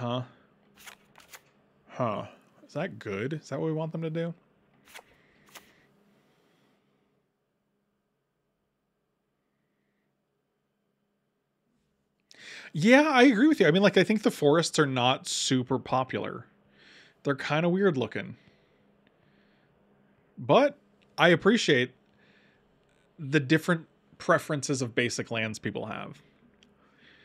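A middle-aged man talks with animation into a close microphone, pausing now and then.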